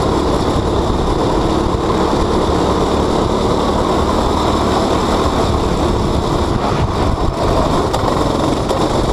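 A motorcycle engine roars loudly at high speed.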